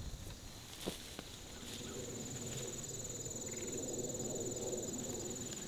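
A man's footsteps swish through tall grass.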